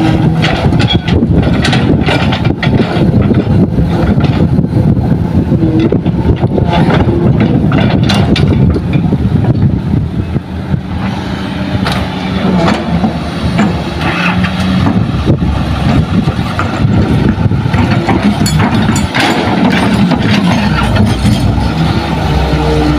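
A heavy engine rumbles steadily nearby.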